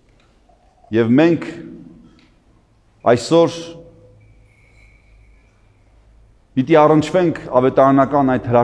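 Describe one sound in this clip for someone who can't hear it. An elderly man chants in a deep voice, echoing through a large hall.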